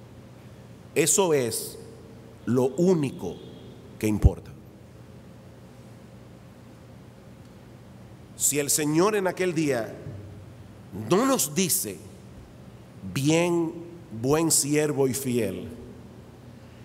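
A middle-aged man speaks with emphasis into a microphone, with pauses.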